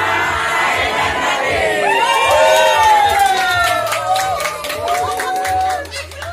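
A large crowd of women, men and children cheers and shouts together close by.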